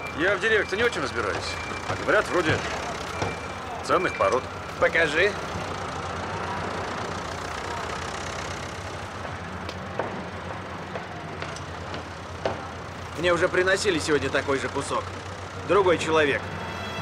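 A middle-aged man talks calmly nearby, outdoors.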